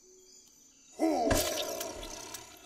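A large creature lets out a loud, rough growl.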